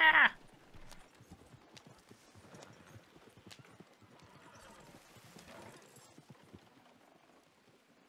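A carriage rolls and rattles over rough ground.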